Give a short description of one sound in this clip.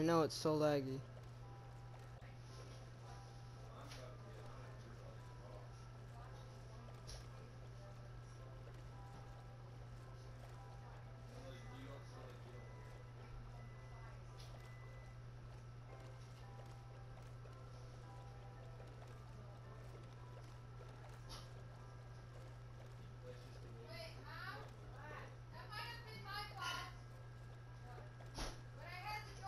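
Oars splash softly through water as a boat rows along.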